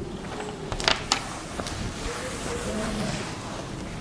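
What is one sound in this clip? A cloth wipes across a chalkboard.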